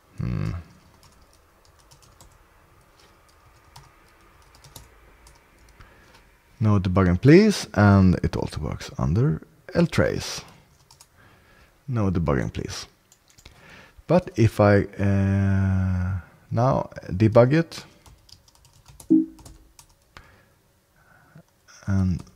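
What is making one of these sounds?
Keys clack on a keyboard.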